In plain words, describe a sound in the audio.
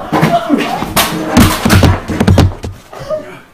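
A body thuds heavily against a sofa.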